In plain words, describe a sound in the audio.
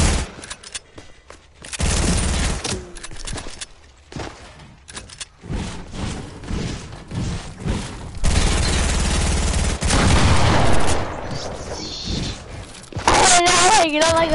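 Building pieces thud and clatter as they are placed.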